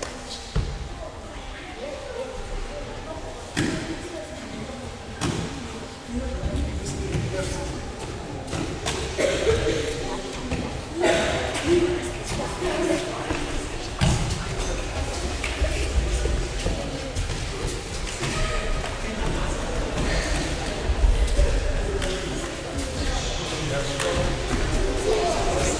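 Children chatter and call out in a large echoing hall.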